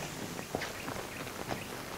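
A group of horses shuffle and stamp nearby.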